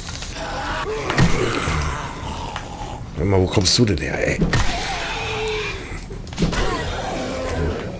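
A zombie growls and snarls close by.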